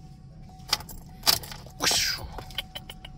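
An ignition key turns and clicks in a car's steering column.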